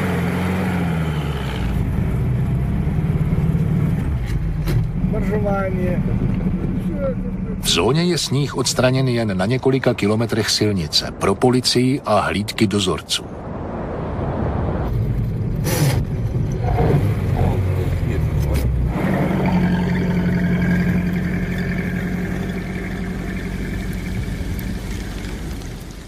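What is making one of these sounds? An engine rumbles steadily.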